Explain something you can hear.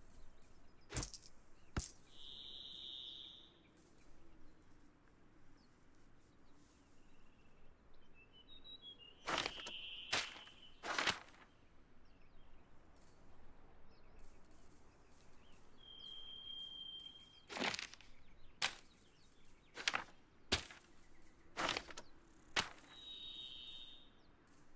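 Sharp interface clicks and short chimes sound now and then.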